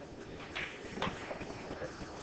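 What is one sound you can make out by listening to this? Pool balls clack together on a table.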